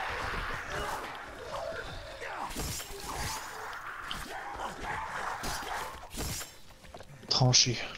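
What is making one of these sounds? A heavy weapon strikes a body with dull thuds.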